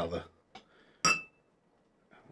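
A glass clinks against a can.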